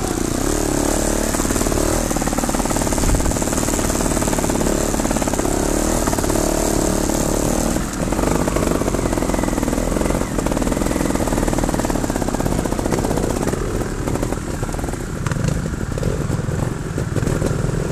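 Tyres crunch over loose stones and dirt.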